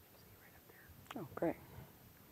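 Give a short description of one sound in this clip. A woman speaks quietly near a microphone.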